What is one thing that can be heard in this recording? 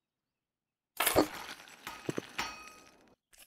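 A heavy fixture thuds and clatters into place.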